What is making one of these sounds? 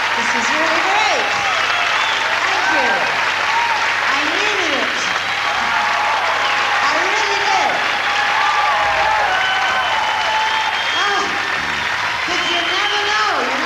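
Audience members whoop and whistle.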